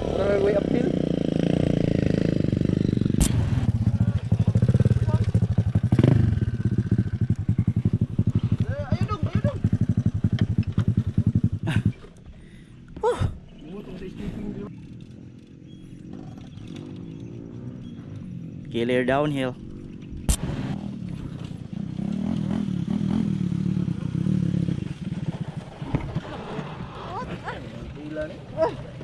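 Dirt bike engines idle and rumble nearby.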